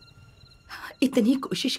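A young woman cries out in distress nearby.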